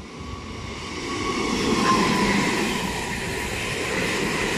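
A train's wheels squeal on the rails.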